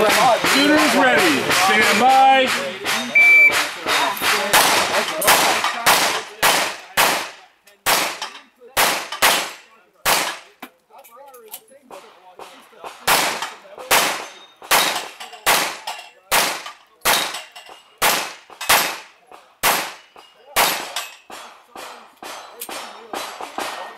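Pistol shots crack in quick bursts outdoors, echoing off a hillside.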